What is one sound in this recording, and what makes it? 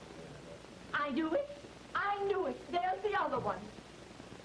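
A middle-aged woman speaks urgently through an old film soundtrack.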